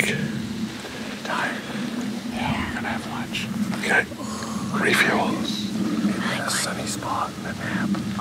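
A younger man talks close by.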